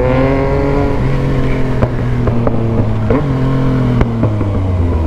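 A motorcycle engine hums steadily up close as it rides along.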